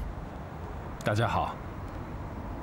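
A young man says a brief friendly greeting.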